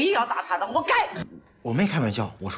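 A middle-aged woman speaks loudly and agitatedly.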